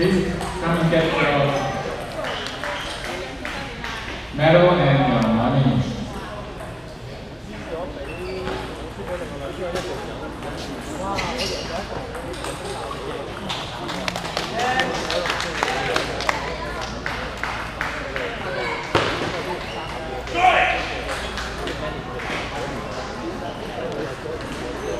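Many people chatter in the background of a large echoing hall.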